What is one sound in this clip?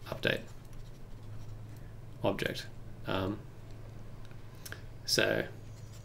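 A young man speaks calmly into a close microphone, in short phrases.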